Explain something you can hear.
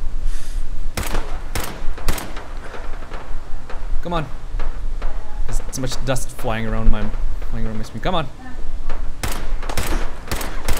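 Rifle shots ring out one after another.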